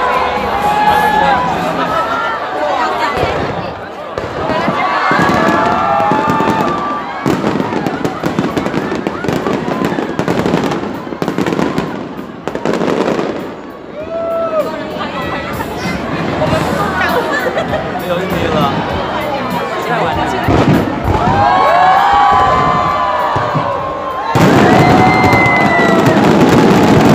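Fireworks crackle and bang overhead.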